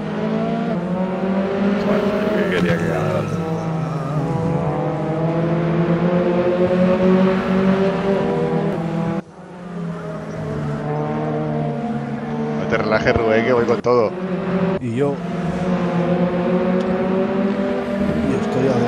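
Racing car engines roar closely, revving up and down through the gears.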